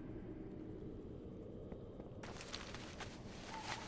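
A map closes with a soft paper rustle.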